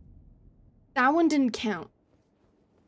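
A young woman exclaims with animation into a close microphone.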